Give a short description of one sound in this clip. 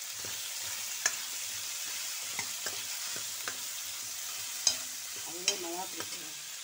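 A metal spoon clinks against a metal pan.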